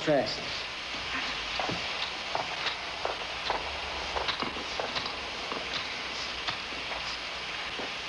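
Shoes scuff and knock against a metal pipe during a climb.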